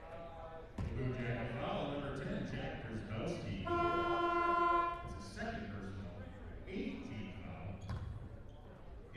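A crowd murmurs and shouts in a large echoing gym.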